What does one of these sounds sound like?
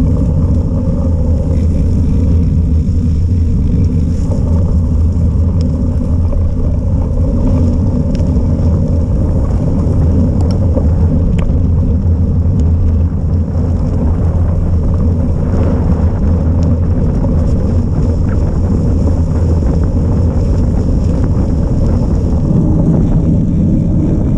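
Wind rumbles loudly against the microphone while riding outdoors.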